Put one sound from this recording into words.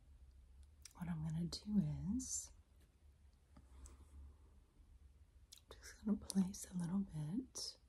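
A glass dropper clinks against a small bottle.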